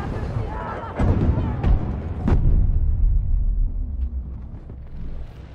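A large explosion roars and rumbles.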